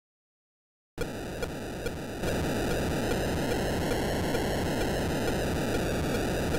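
A low electronic drone from an old video game hums steadily.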